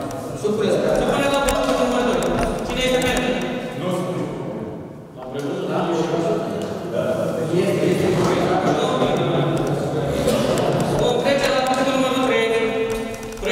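A man speaks with animation in an echoing room.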